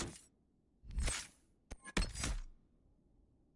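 A soft whoosh sweeps as a menu page turns.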